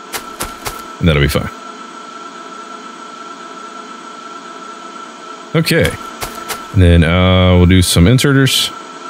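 A man talks animatedly, close to a microphone, at one point drawing out a long, loud sound.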